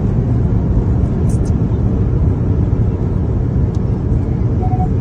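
Wind buffets loudly against the car.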